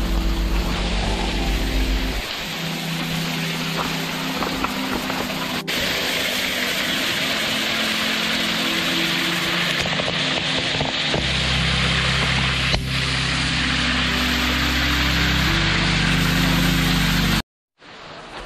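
A waterfall splashes steadily into a pool.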